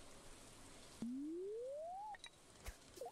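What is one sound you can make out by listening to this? A game's fishing line casts with a rising whirring tone.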